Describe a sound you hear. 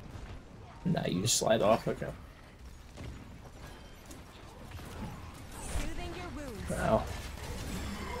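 Gunshots and impacts crackle in a video game fight.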